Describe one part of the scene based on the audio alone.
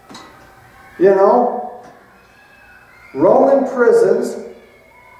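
A man speaks slowly and calmly through a microphone in an echoing hall.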